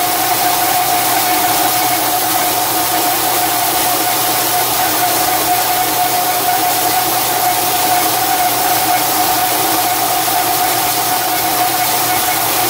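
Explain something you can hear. A cutting tool scrapes and hisses against spinning steel.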